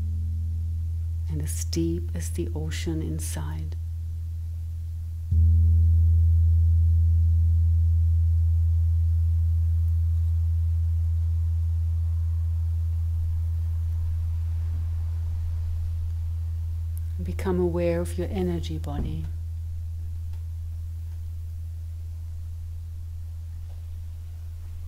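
Crystal singing bowls ring with a deep, steady hum that swells when a bowl is struck and slowly fades.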